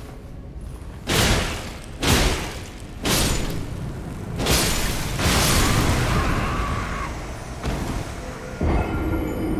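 Loud blows and blasts clash in a fight.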